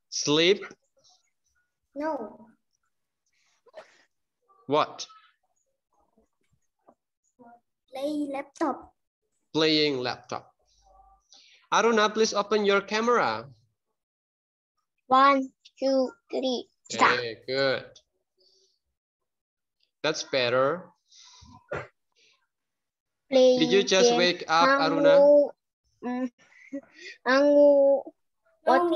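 A child speaks over an online call.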